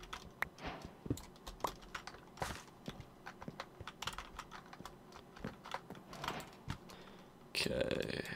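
Game footsteps tap on wood and stone.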